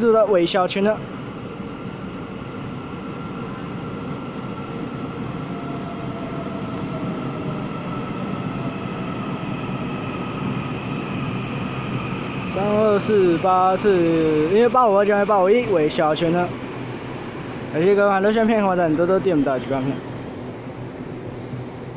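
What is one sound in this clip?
A train rumbles in and slows to a stop.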